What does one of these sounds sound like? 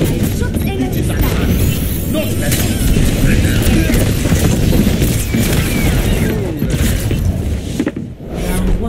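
Video game weapons fire and crackle with electric zaps.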